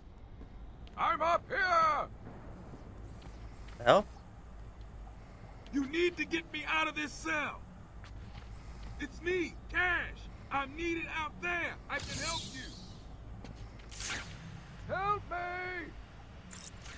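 A young man talks into a close microphone in a calm, casual voice.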